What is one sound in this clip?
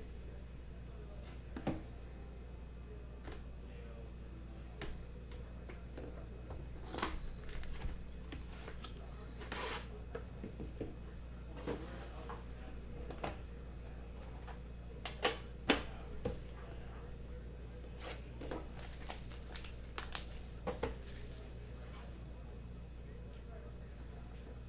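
Hands handle card packs with soft plastic rustles.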